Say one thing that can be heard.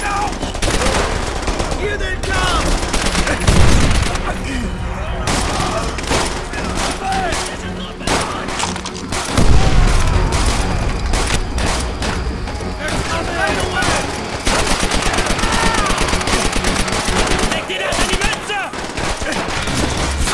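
Automatic rifles fire.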